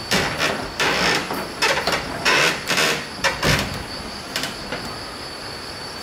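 A metal latch rattles on a wooden door.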